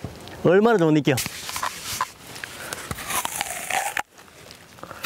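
A man bites and crunches into a crisp apple.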